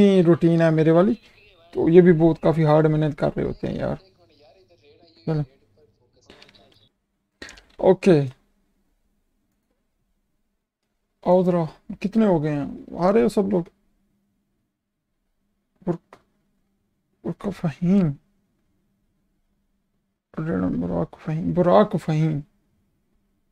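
A young man talks with animation into a close microphone, in short bursts with pauses.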